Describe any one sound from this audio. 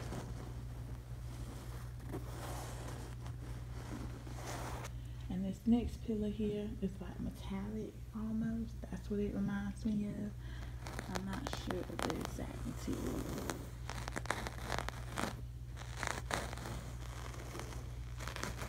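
A hand rubs and pats soft fabric with a light rustle.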